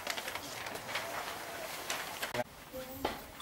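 A large paper poster rustles and crackles as it is handled.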